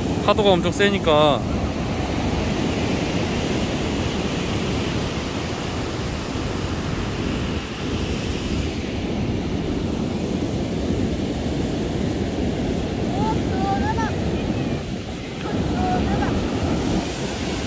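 Waves break and wash up on a beach, outdoors in wind.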